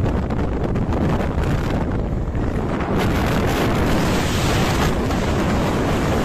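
Wind buffets loudly against a moving vehicle.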